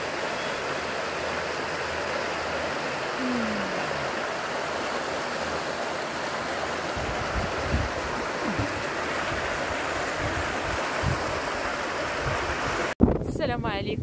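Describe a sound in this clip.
A fast stream rushes and churns steadily.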